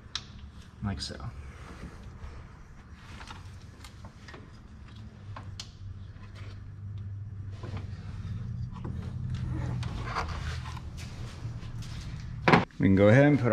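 Small tools click and knock against metal engine parts.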